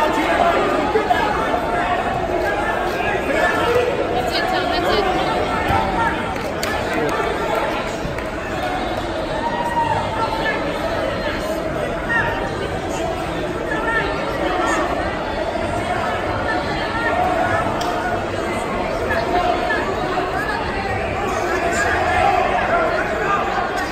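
A crowd of spectators talks and calls out throughout a large echoing hall.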